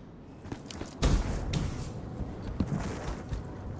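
A rifle fires short bursts of shots.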